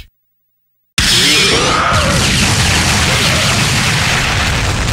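Blows land with heavy thuds and crashes in a fighting game.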